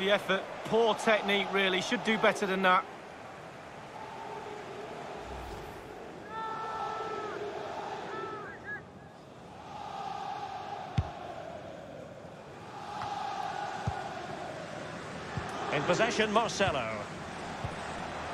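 A large stadium crowd roars steadily, swelling and easing.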